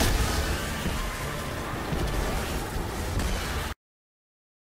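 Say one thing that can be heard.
A game character's energy blast roars and crackles.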